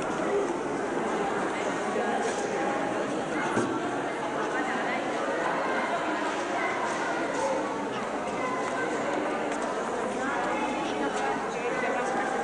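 A crowd of men and women murmur and chatter close by.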